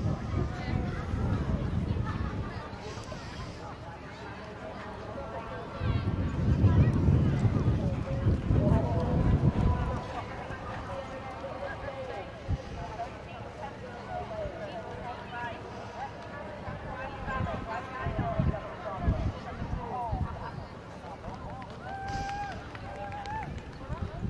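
A horse canters on grass.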